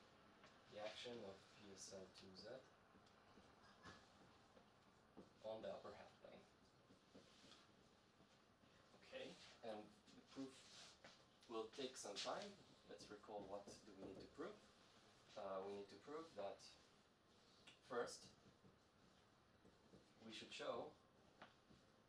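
A man speaks calmly, pausing often.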